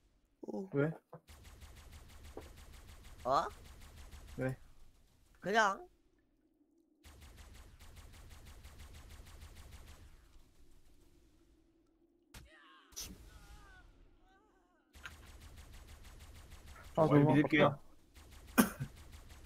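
A weapon fires with an electric zap, again and again.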